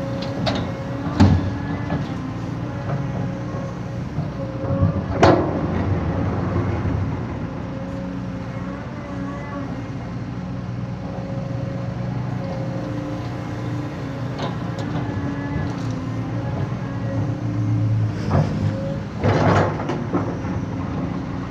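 Dirt and clods thud and scrape as an excavator bucket digs and dumps soil.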